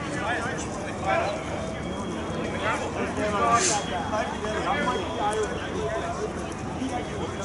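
A man talks with animation close by, outdoors.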